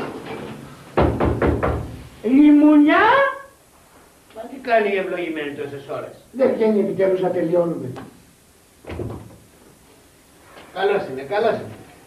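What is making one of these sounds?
Several men talk excitedly, close by.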